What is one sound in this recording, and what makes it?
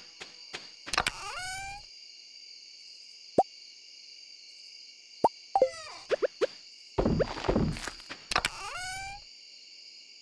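A game menu opens and closes with short soft pops.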